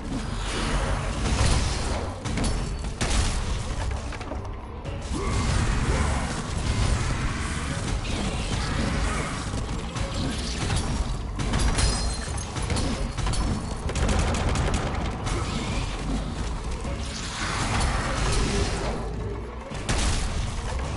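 Blades clash and slash against a giant creature in quick, heavy blows.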